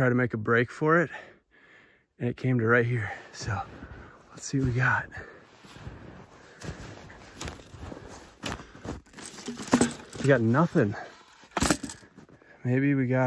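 Footsteps crunch in snow.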